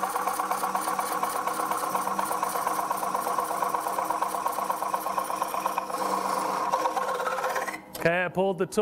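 A gouge cuts into spinning wood with a loud, rough, scraping whir.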